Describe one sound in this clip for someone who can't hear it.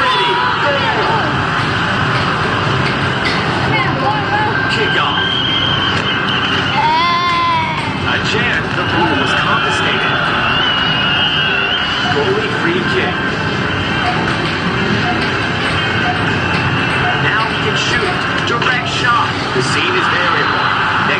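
An arcade soccer game plays electronic sound effects.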